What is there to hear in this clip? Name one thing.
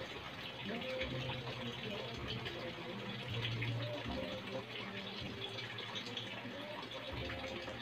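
Water pours from a plastic bottle into a plastic container of pebbles.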